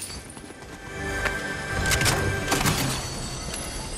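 A treasure chest opens with a bright, shimmering chime.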